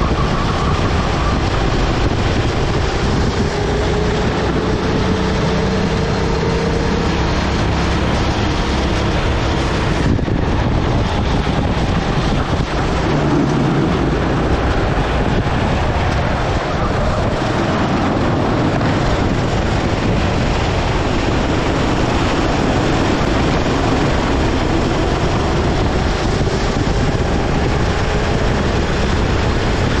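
Other go-kart engines whine nearby.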